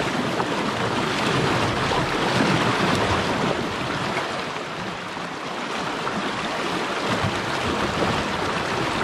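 Fast river water rushes over rocks close by.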